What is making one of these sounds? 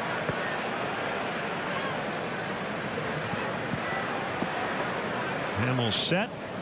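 A stadium crowd murmurs steadily in the open air.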